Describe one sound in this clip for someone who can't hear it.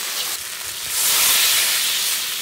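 Water pours into a hot pan with a rushing hiss.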